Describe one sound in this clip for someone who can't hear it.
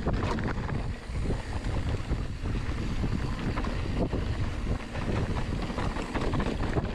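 Bicycle tyres roll and crunch over a dirt trail.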